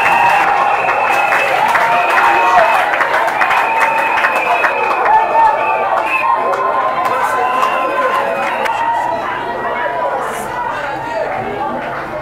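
A large crowd of men and women shouts excitedly in an echoing hall.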